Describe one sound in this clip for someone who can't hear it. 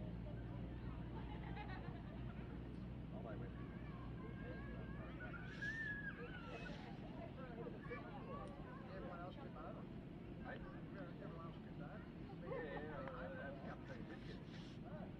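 Men and women chatter and call out outdoors nearby.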